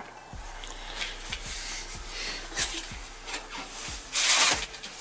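A bag rustles as it is handled.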